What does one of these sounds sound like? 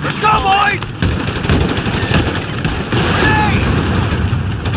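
Rifles fire in rapid bursts.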